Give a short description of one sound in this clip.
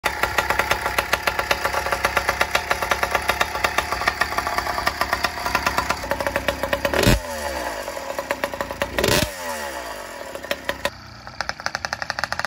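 A small motorbike engine idles with a fast, rapid popping beat.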